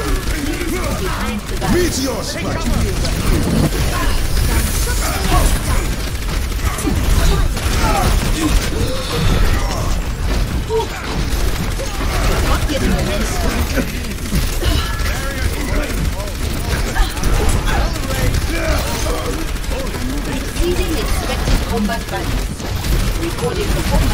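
A game energy weapon fires rapid zapping bursts.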